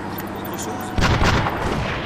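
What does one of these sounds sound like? A field gun fires with a loud boom.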